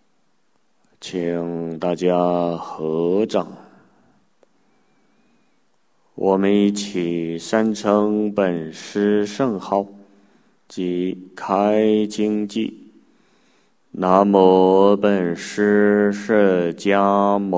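An elderly man chants slowly in a deep, sustained voice into a microphone.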